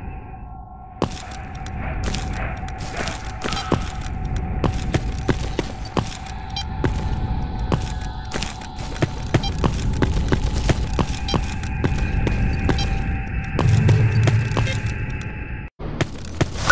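Footsteps thud on a hard floor in an echoing tunnel.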